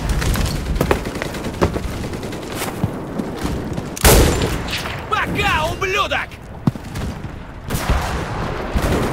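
Footsteps crunch over stone and snow.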